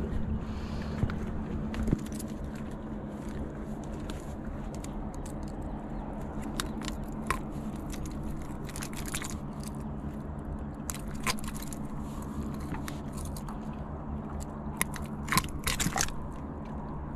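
Metal pliers click and clink against a fishing hook.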